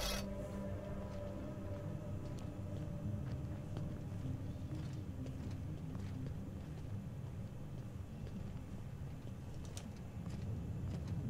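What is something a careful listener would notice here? Footsteps crunch softly on rough ground.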